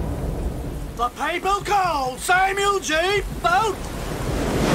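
A man shouts hoarsely and fiercely, close by.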